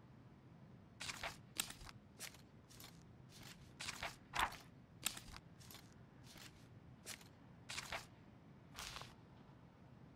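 Book pages flip over.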